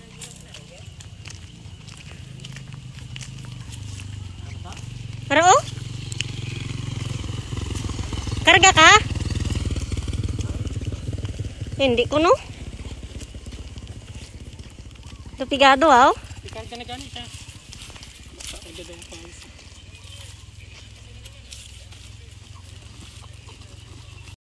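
Small footsteps crunch on dry leaves and dirt.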